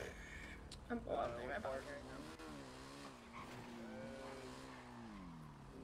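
A motorcycle engine revs and hums as the bike rides off.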